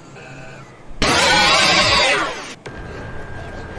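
A burst of loud static hisses.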